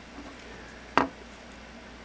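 A small metal part clicks as it is handled.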